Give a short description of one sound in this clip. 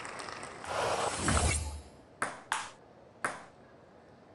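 A table tennis ball clicks against a paddle and the table.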